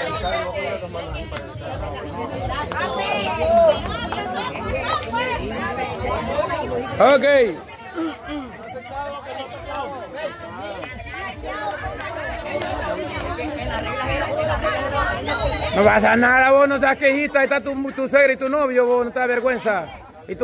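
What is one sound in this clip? A crowd of young people chatter and shout excitedly outdoors.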